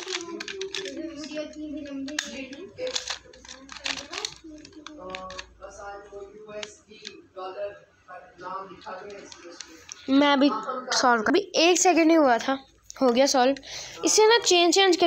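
Plastic puzzle pieces click and rattle as they are twisted.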